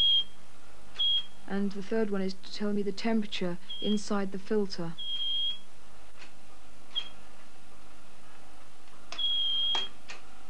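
Switches click on a control panel.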